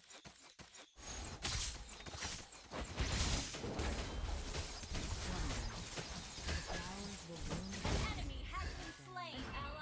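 Game weapons strike with sharp hits during a fight.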